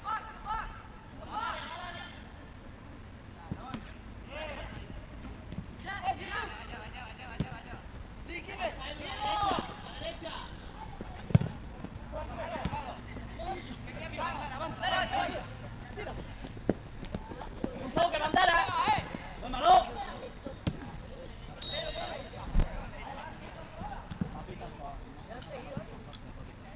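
Football players shout to each other across an open pitch.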